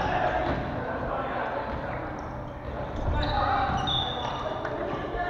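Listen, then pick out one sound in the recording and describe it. Voices of players echo around a large hall.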